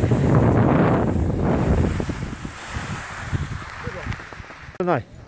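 Skis scrape over snow close by.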